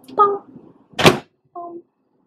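A microwave door shuts with a click.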